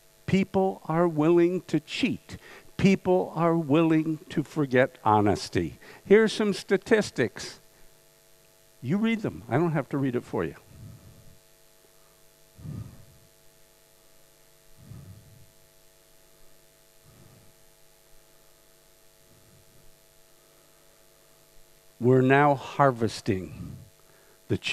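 An older man talks with animation into a microphone.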